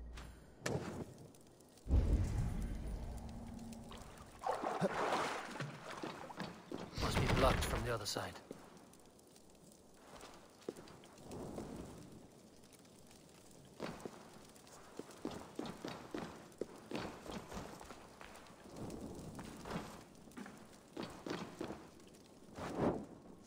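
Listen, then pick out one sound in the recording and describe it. A torch flame crackles and flickers.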